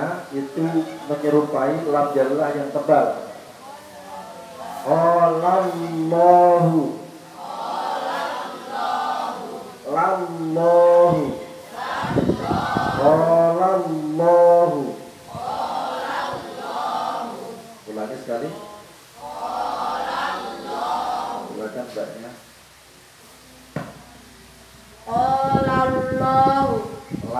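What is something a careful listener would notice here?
A man speaks with animation at a distance, outdoors.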